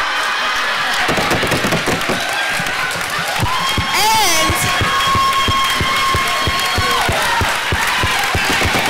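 An audience claps fast and steadily.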